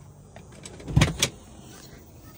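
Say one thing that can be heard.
A car seat lever clicks twice.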